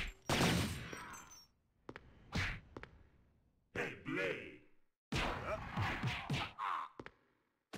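Punches and kicks thud in a video game fight.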